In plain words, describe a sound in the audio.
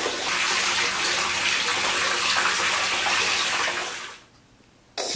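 Hot water pours and splashes steadily into a bath.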